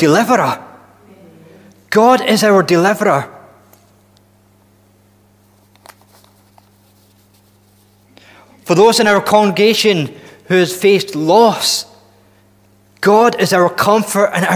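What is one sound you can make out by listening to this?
A man speaks calmly into a microphone, pausing now and then.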